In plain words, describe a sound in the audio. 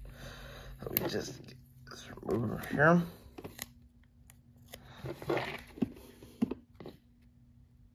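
Small plastic pieces click and snap together.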